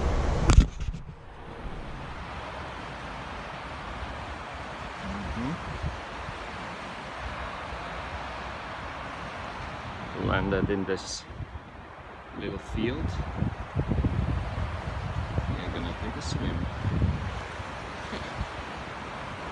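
A river rushes steadily nearby.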